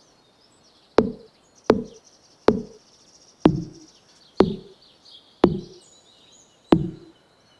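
An axe chops into wood with repeated heavy thuds.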